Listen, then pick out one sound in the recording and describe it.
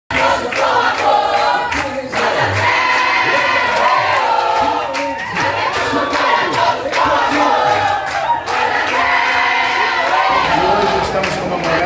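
A crowd chants and cheers loudly.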